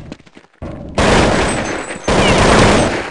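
A rifle fires a burst of loud shots.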